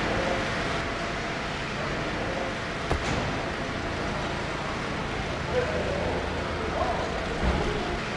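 A car engine hums as a car rolls slowly forward.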